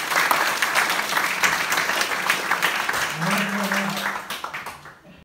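An audience claps in a room.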